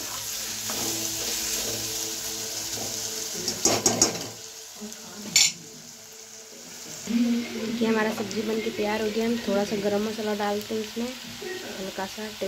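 Food sizzles in hot oil in a pan.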